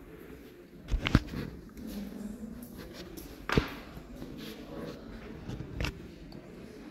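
Metal tools click and tap against a hard surface.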